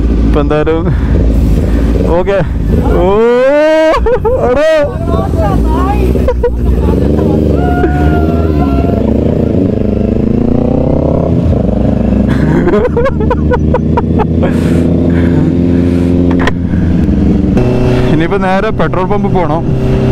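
A motorcycle engine revs loudly, rising and falling in pitch.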